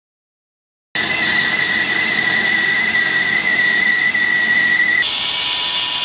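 A band saw whines loudly as it cuts through wood.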